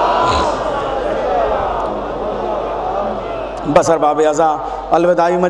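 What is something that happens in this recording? A man speaks loudly and with feeling into a microphone, heard through loudspeakers outdoors.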